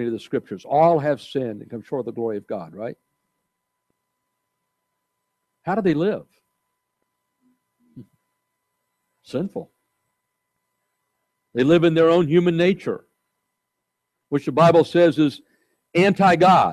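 An elderly man preaches through a microphone, with long pauses between phrases.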